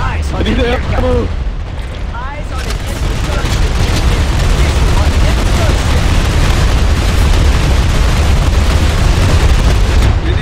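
Explosions boom nearby.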